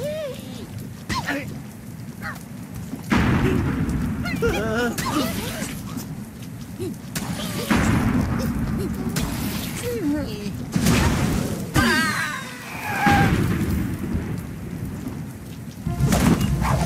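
A cartoon bird squawks as it flies.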